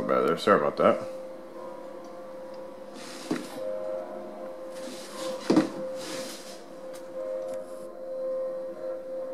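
Soft, sustained music plays from a television's speakers.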